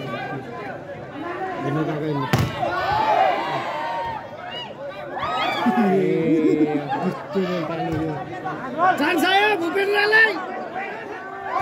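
A large outdoor crowd of spectators shouts and cheers excitedly.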